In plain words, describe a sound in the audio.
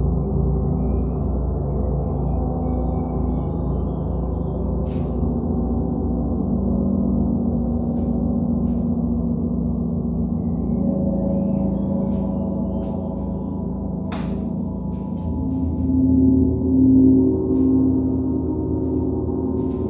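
Large gongs hum with long, overlapping resonant tones.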